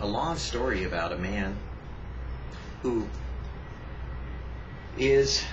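An older man speaks calmly and close by, with pauses.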